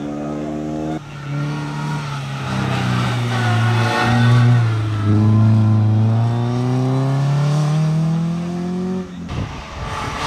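A second rally car engine screams up through the gears and fades into the distance.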